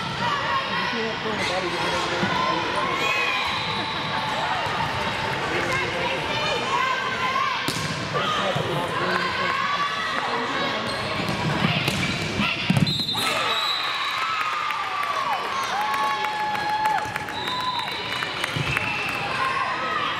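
Young girls call out and shout to one another during play.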